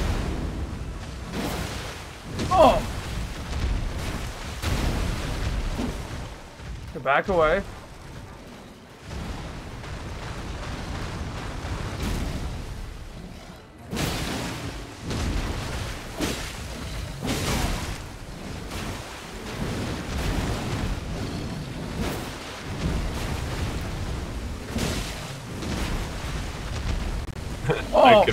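Water splashes heavily as a huge beast thrashes through a shallow pond.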